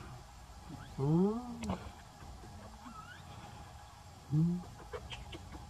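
A baby monkey gives short, high squeaks close by.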